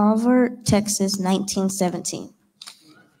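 A young girl speaks through a microphone.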